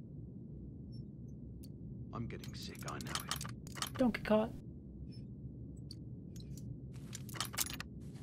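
Metal clicks as a lock is picked.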